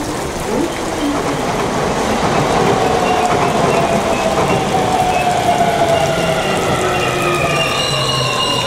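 A high-speed train rushes past with a rising whine.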